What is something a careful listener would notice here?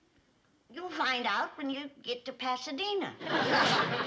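An elderly woman speaks loudly and with animation nearby.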